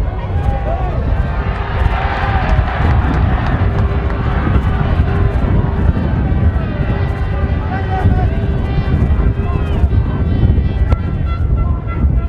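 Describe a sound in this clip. A large outdoor crowd cheers, swelling.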